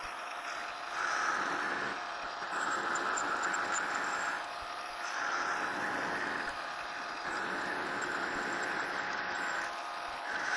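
A cutting tool scrapes against spinning metal in repeated passes.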